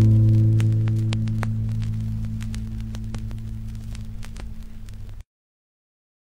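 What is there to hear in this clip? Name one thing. A spinning vinyl record crackles and pops softly.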